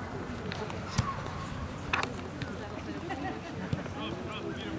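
A ball is kicked with a dull thump.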